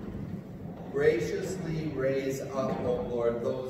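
A man speaks aloud with raised voice, heard through a microphone in an echoing hall.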